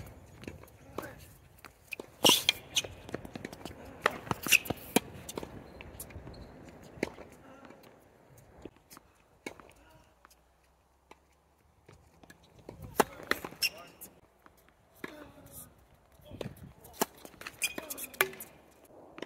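A tennis ball is struck sharply with a racket, back and forth across an outdoor court.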